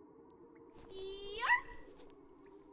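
A young woman cries out loudly nearby.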